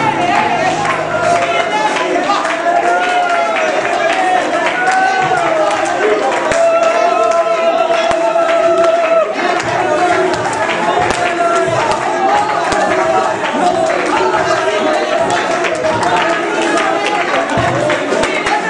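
A crowd of women and men sings loudly together in an echoing hall.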